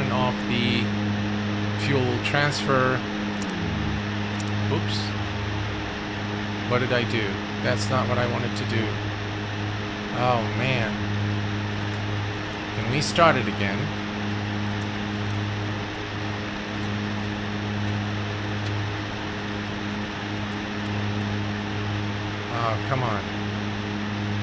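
Aircraft engines drone steadily.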